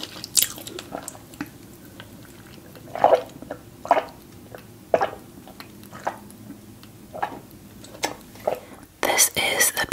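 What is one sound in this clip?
A woman gulps a drink close to a microphone.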